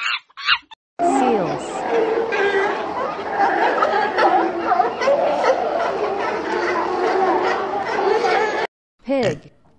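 A fur seal bellows and barks.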